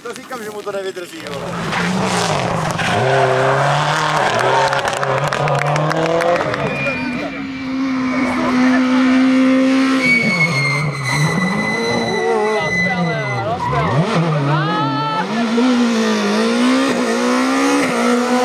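Rally car engines roar and rev hard, rising and falling with gear changes.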